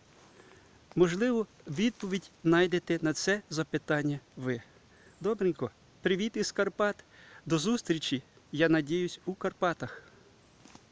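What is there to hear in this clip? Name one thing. A middle-aged man talks calmly, close to the microphone.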